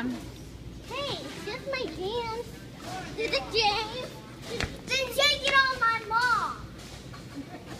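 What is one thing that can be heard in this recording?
A young girl talks with excitement close by.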